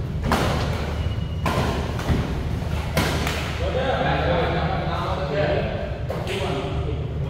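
A shuttlecock is struck sharply by rackets in a large echoing hall.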